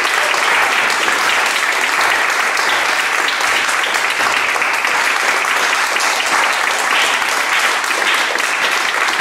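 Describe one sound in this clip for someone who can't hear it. An audience applauds steadily in an echoing hall.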